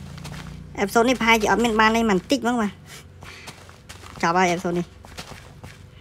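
Seeds are pressed into soil with soft crunching sounds.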